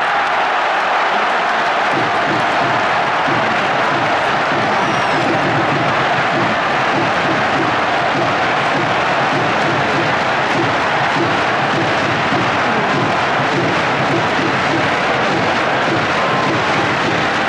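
A stadium crowd cheers and chants loudly throughout.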